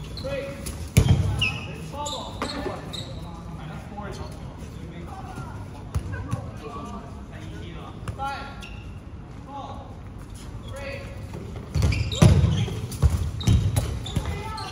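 Balls thump against a hard floor and bodies in a large echoing hall.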